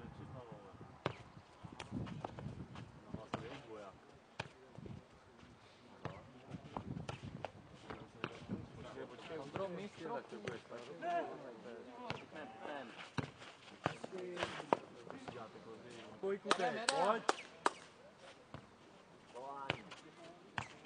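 A ball is struck and bounces in a rally.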